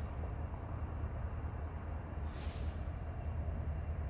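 A train rumbles faintly in the distance as it approaches.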